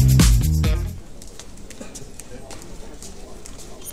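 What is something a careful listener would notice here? Footsteps tap on a hard floor as a man walks.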